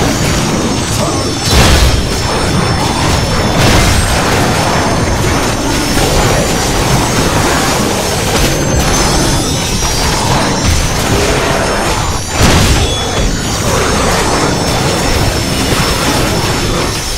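Electric magic crackles and bursts.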